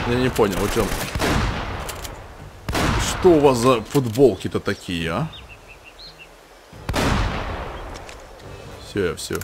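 Loud gunshots boom and echo.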